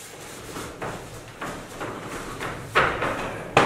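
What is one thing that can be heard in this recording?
Bare feet shuffle and thump on a soft mat.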